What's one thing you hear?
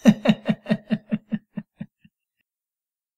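A young man laughs heartily close by, the laughter fading away.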